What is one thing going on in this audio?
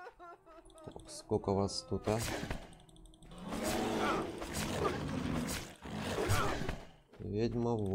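Blades slash and thud in a close fight.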